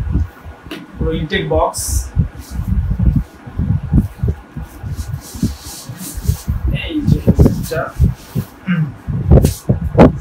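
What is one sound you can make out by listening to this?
Plastic wrapping crinkles as clothing is pulled out.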